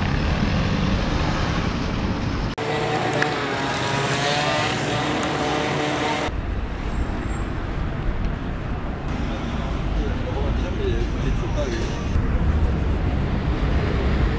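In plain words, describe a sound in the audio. Cars drive by on a busy street.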